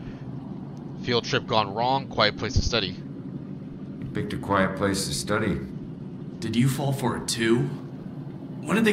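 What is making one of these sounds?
A young man speaks with agitation, close by.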